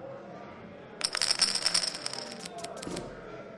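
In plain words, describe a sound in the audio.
Poker chips clatter onto a table.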